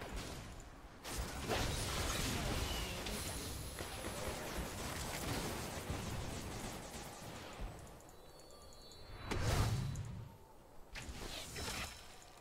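Game spells blast and crackle in a busy fight.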